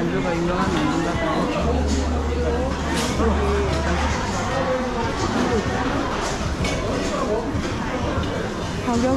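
Many men and women chatter all around.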